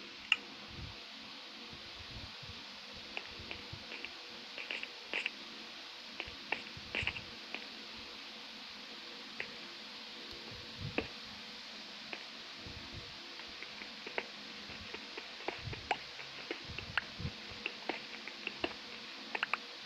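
A pickaxe taps and chips at stone in quick, light knocks.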